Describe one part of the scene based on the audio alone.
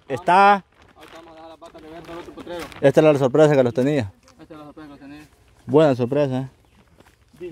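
A young man talks calmly nearby.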